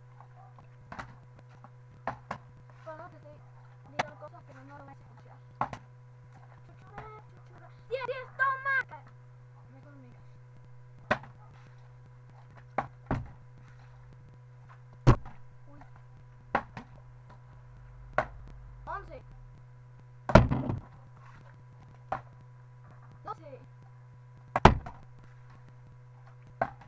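A plastic bottle partly filled with water is flipped and thuds down on a hard floor.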